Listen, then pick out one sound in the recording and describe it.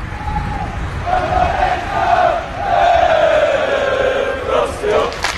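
A crowd of young men chant loudly together.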